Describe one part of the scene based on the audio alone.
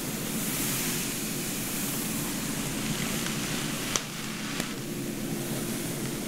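Hair rustles softly as it is brushed and handled.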